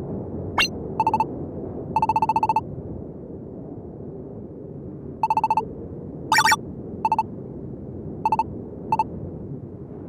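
Short electronic beeps blip in quick bursts.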